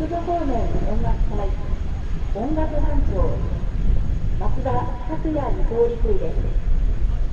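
A man calls out commands loudly outdoors.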